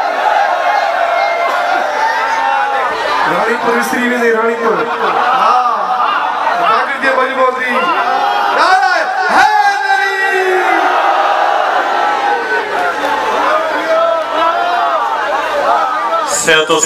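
A young man recites loudly into a microphone through loudspeakers in a large echoing hall.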